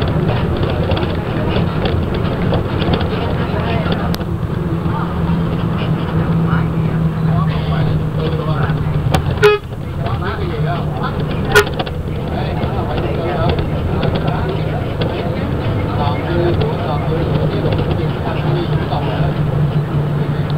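A vehicle engine hums steadily from inside while driving.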